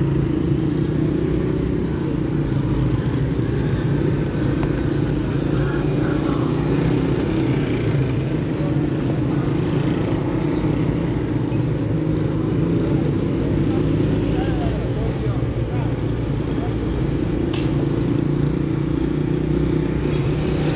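A motorcycle engine hums steadily up close.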